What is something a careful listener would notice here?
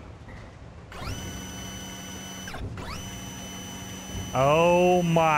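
A small electric motor whirs with a steady whine.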